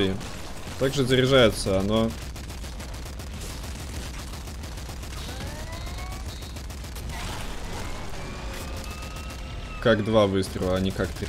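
Rapid game gunfire crackles and pops.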